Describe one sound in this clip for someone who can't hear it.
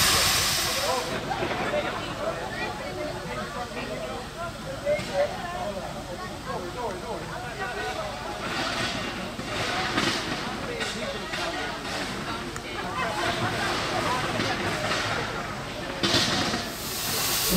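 A steam locomotive puffs rhythmically as it slowly climbs.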